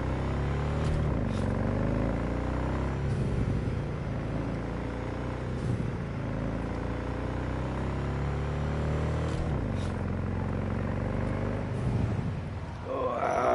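A motorbike engine drones and revs up and down.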